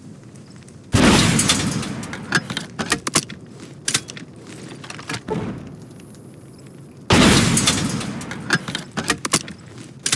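A heavy explosion booms and rumbles away.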